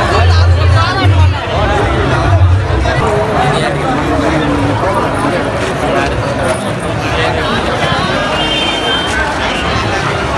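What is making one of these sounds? A large crowd chatters loudly all around.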